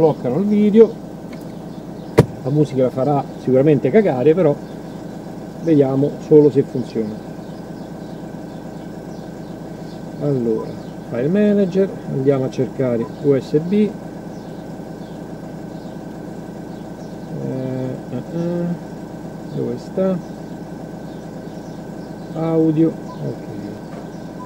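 A man talks calmly, close by, in short bursts.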